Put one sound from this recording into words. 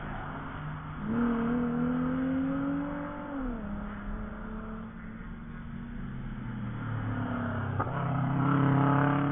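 A car engine revs up and shifts gears in the distance.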